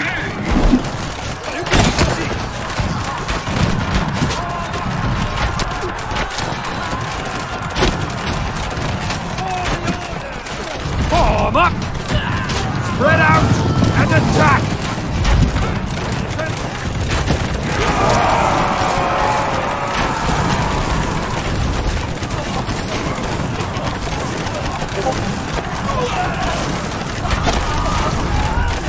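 Swords and shields clash and clang in a large battle.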